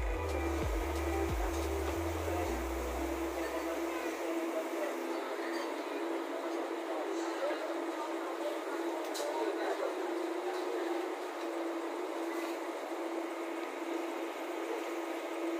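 Footsteps climb the metal steps of a bus.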